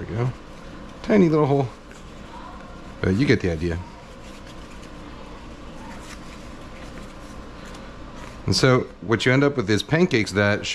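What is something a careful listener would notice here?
Soft flatbreads rustle faintly as hands pull them apart.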